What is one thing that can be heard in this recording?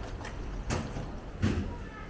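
Footsteps scuff on a paved alley nearby.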